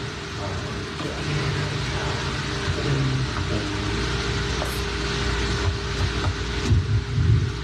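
A man speaks into a microphone with a slight echo.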